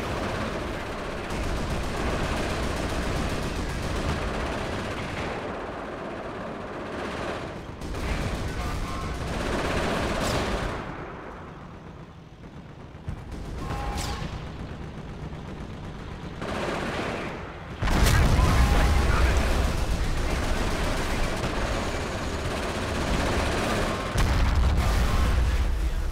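Gunfire and explosions rumble and crack in a battle.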